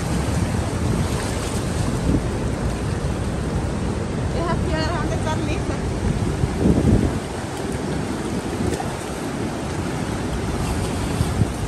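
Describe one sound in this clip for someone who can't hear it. Rough water rushes and splashes over rocks close by.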